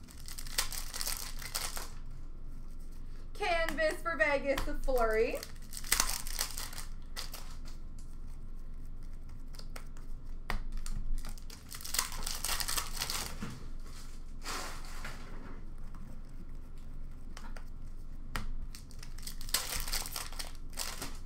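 Foil card packs crinkle and rustle.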